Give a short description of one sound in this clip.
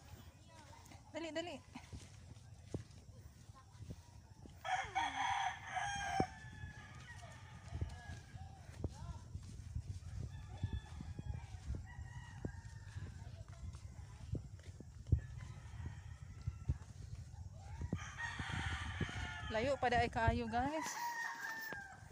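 A young girl talks and calls out close by.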